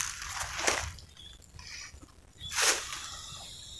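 Dry leaves crunch and rustle underfoot.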